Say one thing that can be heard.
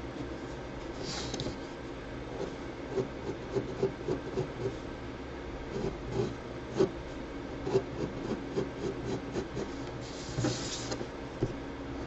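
A sheet of paper rustles as it slides on a table.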